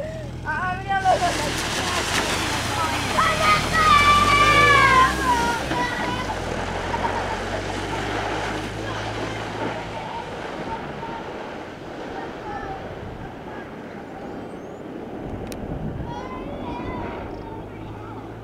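A board scrapes and hisses over loose sand.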